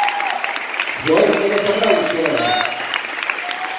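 A man in the crowd cheers loudly.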